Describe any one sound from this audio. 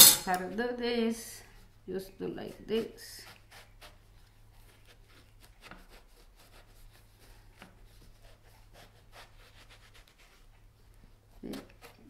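A knife cuts through an eggplant on a wooden board.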